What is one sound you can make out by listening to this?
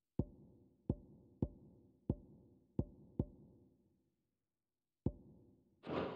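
Short soft menu clicks tick at a steady pace.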